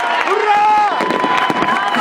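Fireworks pop and crackle.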